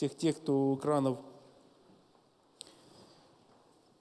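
Paper rustles as a man turns a page.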